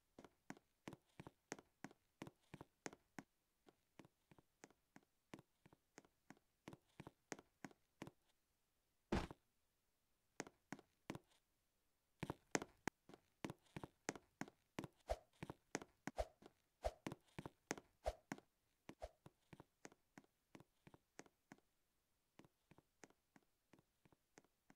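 Footsteps of a game character tap quickly and evenly.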